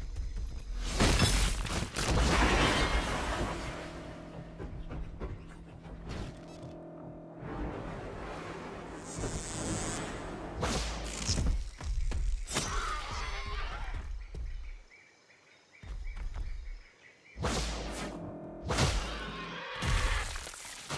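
A blade slashes into flesh with wet, heavy thuds.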